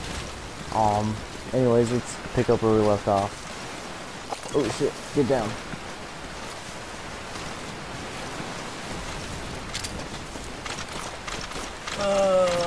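A body crawls through grass with soft rustling.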